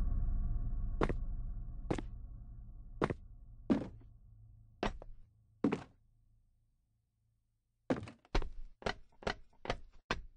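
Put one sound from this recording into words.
Footsteps thud in quick, uneven steps.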